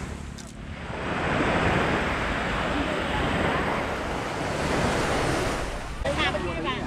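Waves wash onto the shore nearby.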